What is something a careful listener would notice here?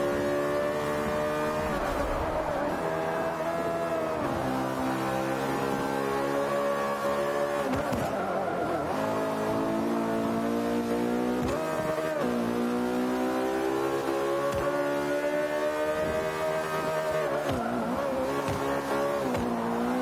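A racing car engine roars loudly, rising in pitch as it speeds up and dropping sharply at each gear change and braking.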